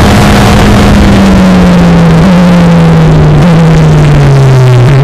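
A Formula Renault single-seater race car downshifts while braking, its engine pitch dropping in steps.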